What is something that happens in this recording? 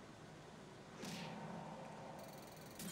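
A muffled impact thuds.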